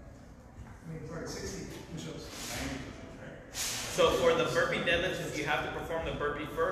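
A man talks calmly.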